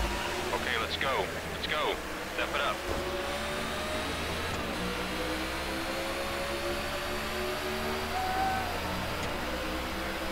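A race car engine roars and climbs steadily in pitch as it speeds up.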